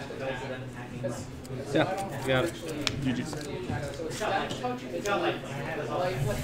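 Two men talk calmly close by.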